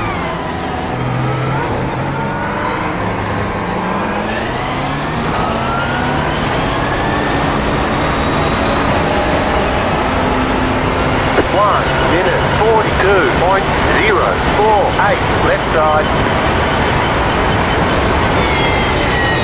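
A racing car engine roars loudly, rising in pitch through the gears.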